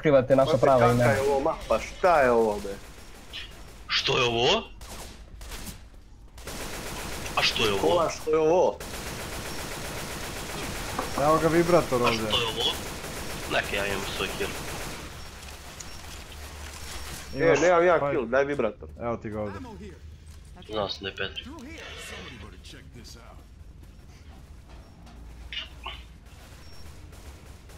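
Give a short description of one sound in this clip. A rifle fires rapid gunshots.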